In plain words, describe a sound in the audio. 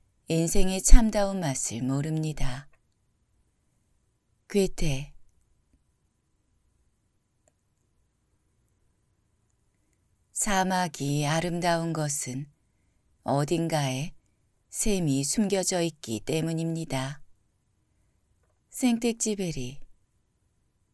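A man reads aloud calmly into a close microphone, with long pauses.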